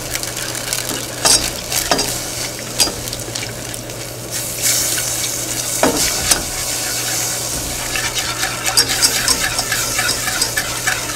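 A whisk clinks and scrapes against a metal pot.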